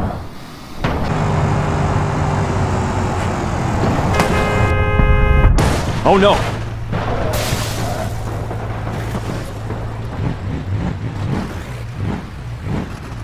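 A car engine roars at speed.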